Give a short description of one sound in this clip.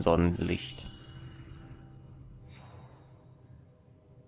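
A magical shimmering chime rings out and slowly fades.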